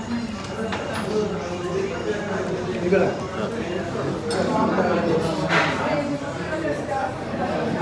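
Men talk nearby with animation.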